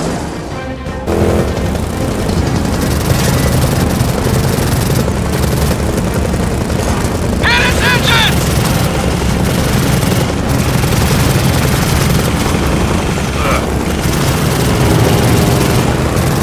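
A motorbike engine roars steadily.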